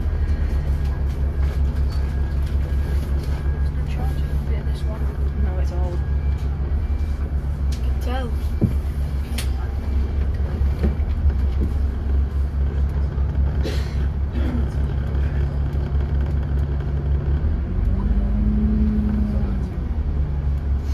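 A bus engine hums steadily nearby.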